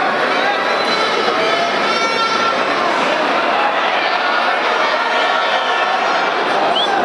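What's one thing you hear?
A large crowd cheers and shouts throughout in a big echoing hall.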